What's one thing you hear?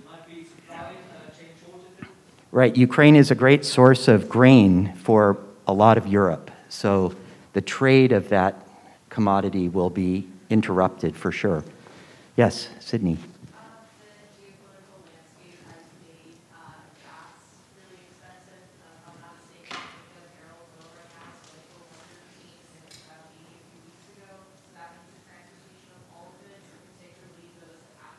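An elderly man speaks with animation through a microphone in a large room.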